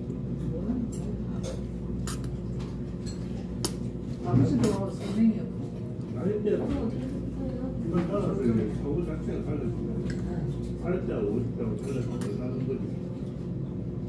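A woman slurps noodles.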